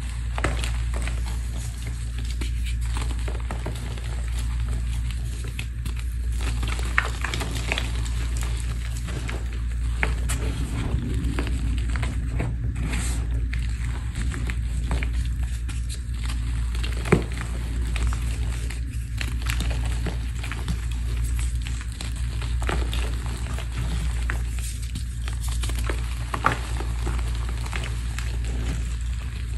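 Crumbly chunks snap and break apart between fingers.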